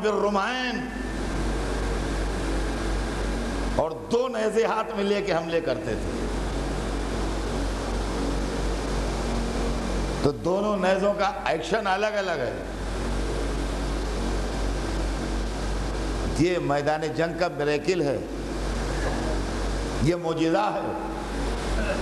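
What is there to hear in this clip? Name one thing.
An elderly man speaks with animation through a microphone, in short bursts with pauses.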